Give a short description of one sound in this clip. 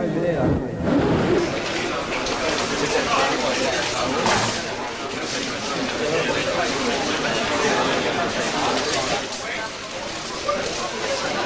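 A crowd jostles and talks loudly up close.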